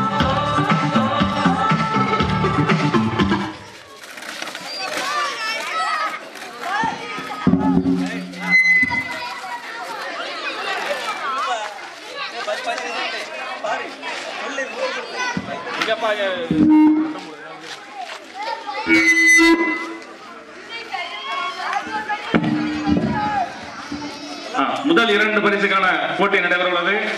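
A crowd of children chatter outdoors.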